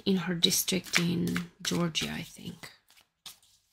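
Playing cards riffle and flutter as a deck is shuffled.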